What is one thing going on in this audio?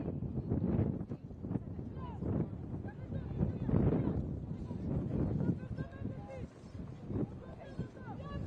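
Young women shout to each other from a distance outdoors.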